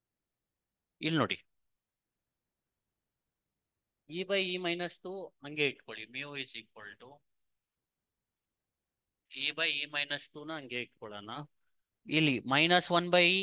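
A man speaks calmly and explains into a close microphone.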